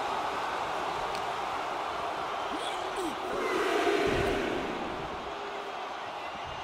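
A large crowd cheers and roars, echoing in a big arena.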